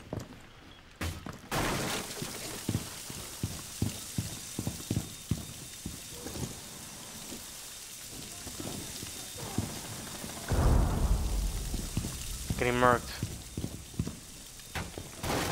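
A wooden barricade is torn apart with a splintering crack.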